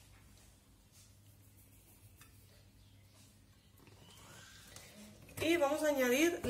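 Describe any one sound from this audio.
Oil pours into a metal pot.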